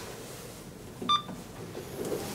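An elevator button beeps.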